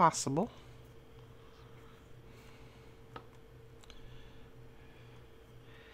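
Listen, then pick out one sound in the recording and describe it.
Paper rustles softly as hands turn a small booklet.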